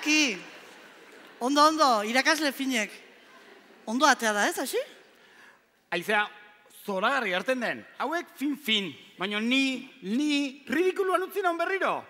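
A man speaks through a headset microphone with animation.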